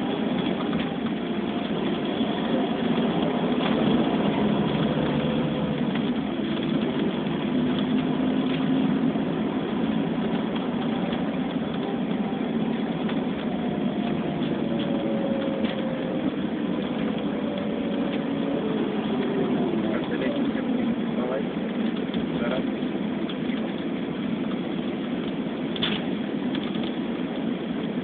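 An engine hums steadily from inside a moving vehicle.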